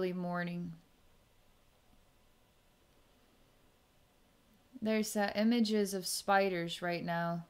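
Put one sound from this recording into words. A woman speaks calmly and softly into a microphone, close by.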